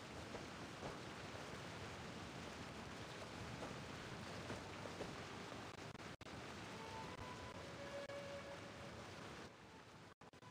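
Wind rushes loudly past during a fall through the air.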